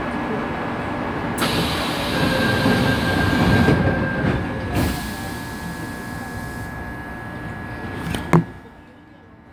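A train rumbles along the tracks and slows down.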